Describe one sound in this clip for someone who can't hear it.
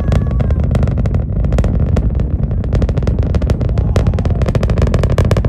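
A distant rocket roars with a deep, crackling rumble.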